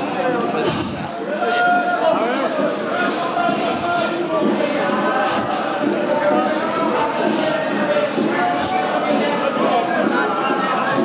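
A crowd of people chatters and talks all around.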